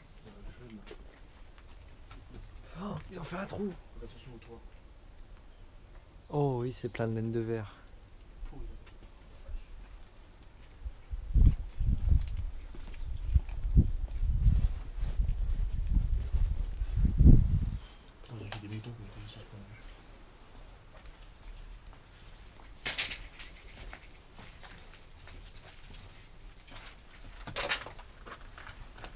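Footsteps crunch over debris and rubble.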